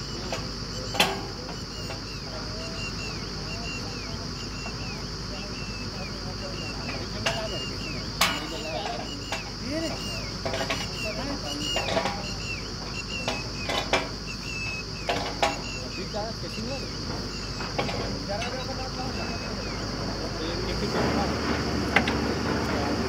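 Metal clanks sharply now and then as workers handle drill pipe.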